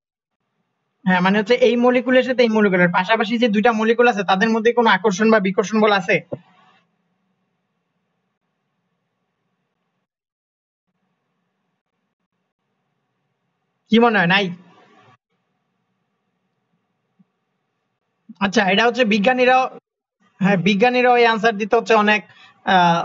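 A young woman speaks calmly over an online call, in short bursts with pauses.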